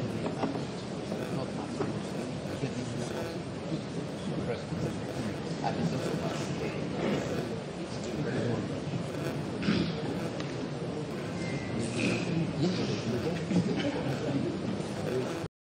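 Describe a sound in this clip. Many voices murmur in a large echoing room.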